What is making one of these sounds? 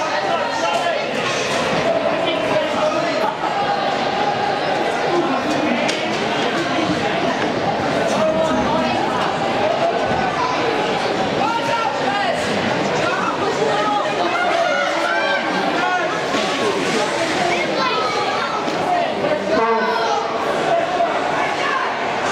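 A crowd of spectators shouts and cheers in an echoing indoor rink.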